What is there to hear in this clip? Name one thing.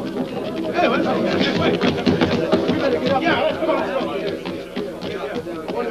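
Heavy boots clatter down wooden stairs.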